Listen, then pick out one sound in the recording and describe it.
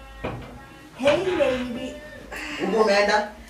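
A young woman laughs and talks nearby.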